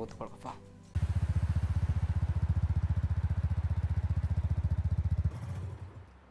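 A motorcycle engine rumbles with a fast, even throb.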